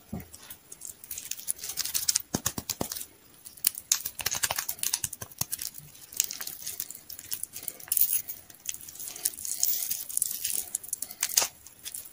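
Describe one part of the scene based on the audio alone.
Plastic wrappers crinkle and rustle under fingers.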